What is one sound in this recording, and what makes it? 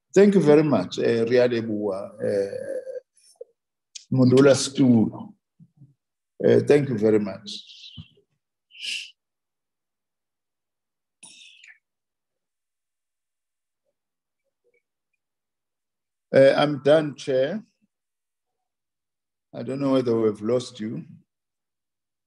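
An elderly man speaks calmly in short bursts over an online call.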